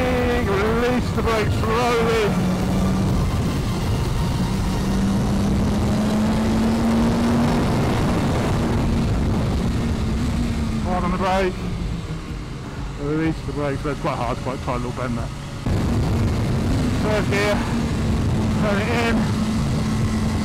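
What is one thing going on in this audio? A motorcycle engine roars loudly close by, rising and falling in pitch as it revs and shifts gears.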